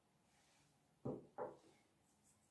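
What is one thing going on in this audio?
A brush clinks against a glass bowl.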